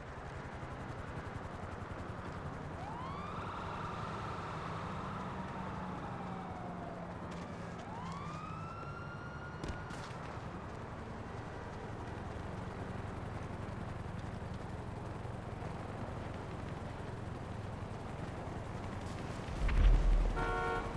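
Footsteps patter quickly on pavement as a man runs.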